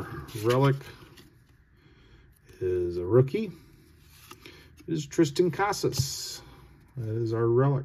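Hands shuffle through trading cards.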